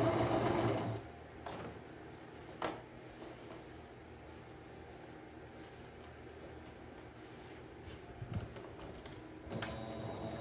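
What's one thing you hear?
Thick fabric rustles as it is moved.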